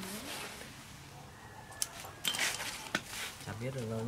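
Banana leaves rustle as a man handles them.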